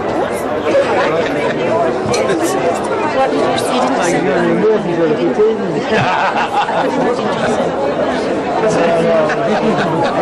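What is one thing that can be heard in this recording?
A middle-aged man laughs close by.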